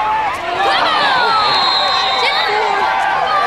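A referee's whistle blows a long, shrill blast.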